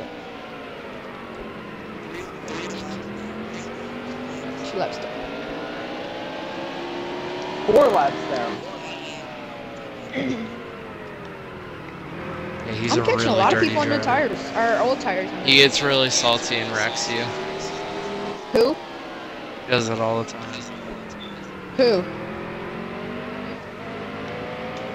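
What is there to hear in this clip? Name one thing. A race car engine roars steadily, rising and falling in pitch as it shifts gears.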